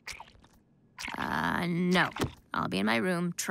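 A young woman speaks in a flat, deadpan voice.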